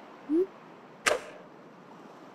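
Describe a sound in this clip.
A golf club strikes a ball out of sand with a sharp thud.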